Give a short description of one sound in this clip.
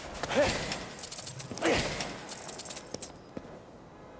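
Coins jingle and clink.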